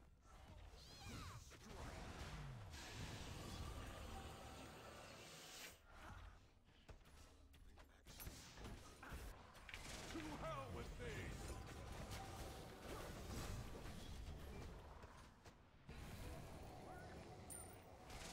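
Magic blasts crackle and whoosh in a fight.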